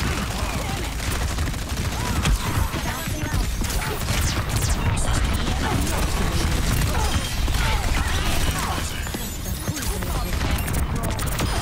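Explosions boom close by.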